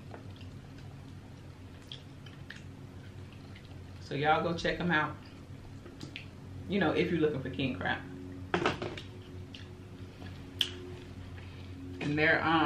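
A young woman chews food close to a microphone with wet, smacking sounds.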